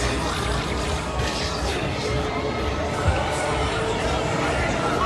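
A fairground ride rumbles and whirs as it spins.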